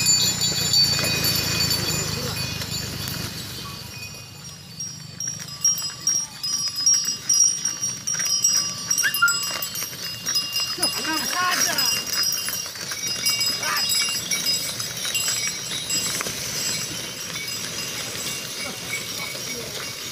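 Wooden cart wheels creak and rumble over a rough road.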